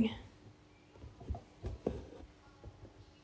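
Thread is pulled through taut fabric with soft rustles and taps.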